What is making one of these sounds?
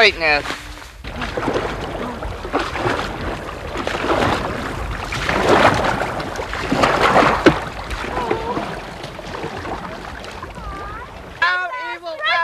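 Paddles splash and churn through water.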